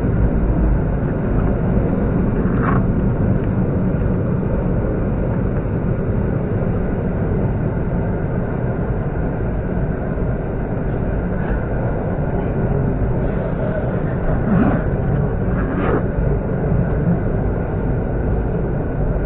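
An electric multiple-unit train rumbles along the rails, heard from inside a carriage.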